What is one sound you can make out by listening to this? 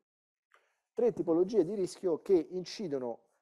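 A woman lectures with animation through a microphone.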